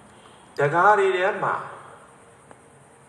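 An elderly man chants in a drawn-out voice through a microphone, with a reverberant tail.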